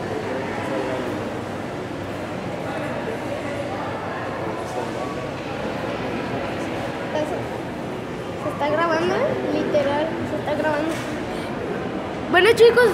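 Several adults chatter over one another.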